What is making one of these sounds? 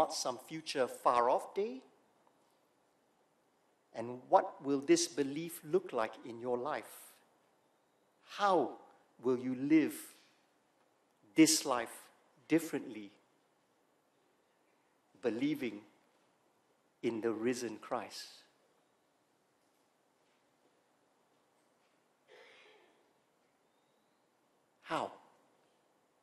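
A middle-aged man speaks with animation into a microphone, in short phrases with pauses.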